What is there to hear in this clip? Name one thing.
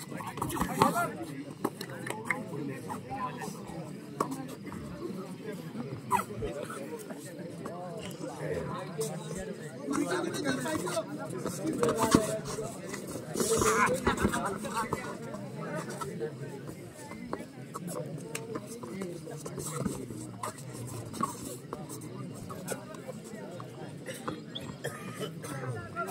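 A crowd of onlookers chatters and calls out outdoors.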